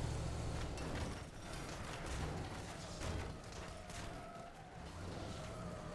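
A locomotive crashes into a building, debris crunching.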